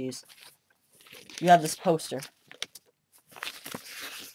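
Paper rustles as a booklet is handled.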